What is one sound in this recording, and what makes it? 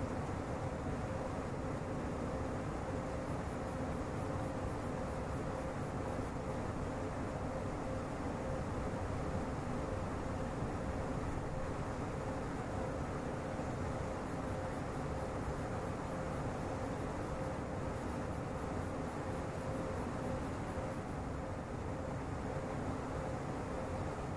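A train rumbles steadily along the rails from inside a carriage.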